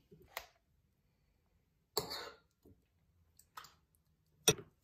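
A spoon scrapes thick yogurt from a plastic tub.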